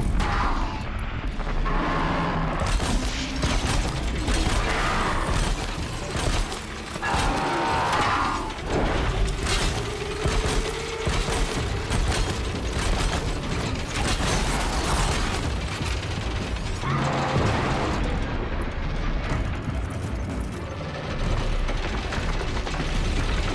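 Arrows hit metal with sharp cracks and bursts.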